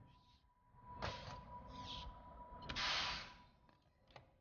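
A metal canister clicks and hisses as it is lifted from its mount.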